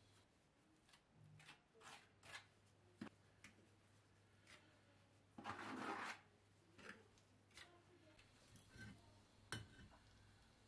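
A trowel scrapes mortar in a metal bucket.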